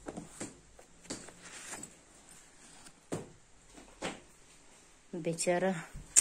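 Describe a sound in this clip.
A fabric bag rustles as it is handled.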